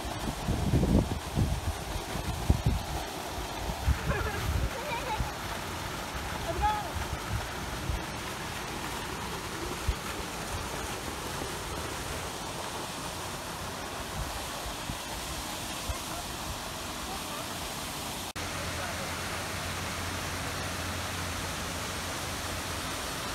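Water splashes and rushes steadily nearby, outdoors.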